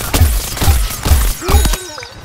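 A cartoon explosion bursts loudly.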